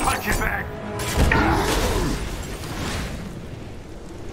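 A heavy metallic crash and rumble bursts out, then dies away.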